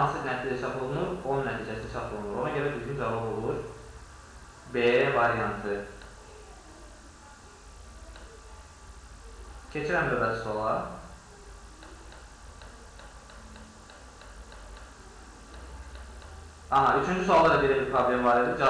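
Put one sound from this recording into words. A man speaks calmly and explains into a close microphone, with pauses.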